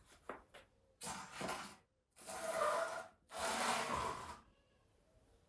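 A metal peel scrapes against a stone oven floor.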